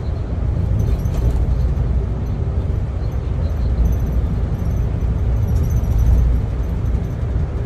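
Tyres hum steadily on the road.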